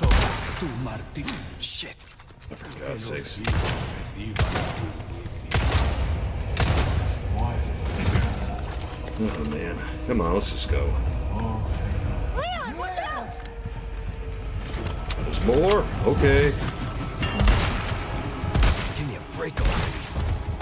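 Gunshots ring out loudly, one after another.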